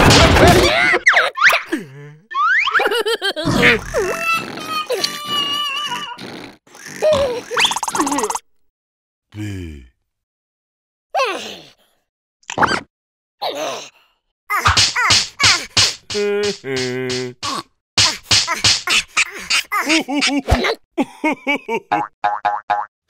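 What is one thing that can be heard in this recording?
Cartoon creatures babble and squeal in high, excited voices.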